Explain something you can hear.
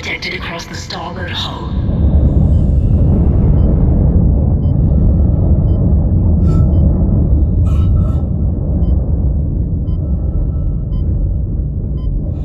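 Heavy metal footsteps clank on a metal floor.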